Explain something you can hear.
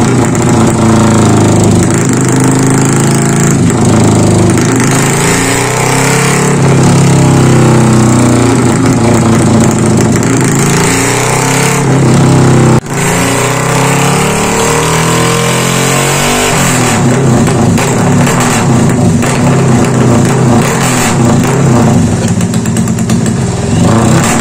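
A motorcycle engine revs hard, its pitch rising and falling again and again.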